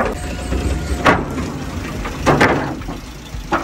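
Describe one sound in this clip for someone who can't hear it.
Tyres clank over metal plates as a truck rolls onto a scale.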